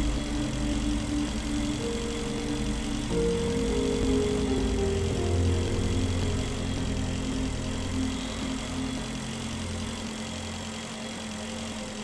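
A low engine hums steadily.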